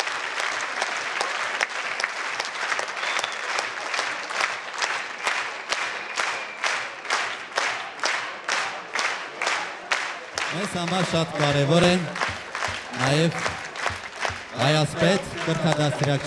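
A crowd claps in steady rhythm together.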